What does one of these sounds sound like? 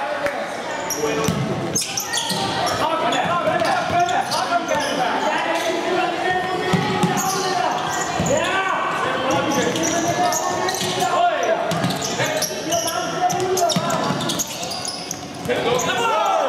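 A ball thumps as players kick it across a hard court.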